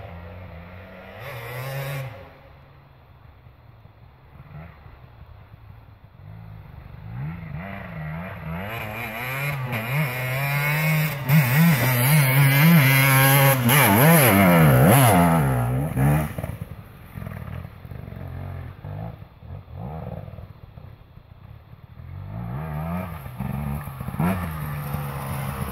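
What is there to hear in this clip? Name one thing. A dirt bike engine revs and whines, rising and falling, loudest as it passes close by.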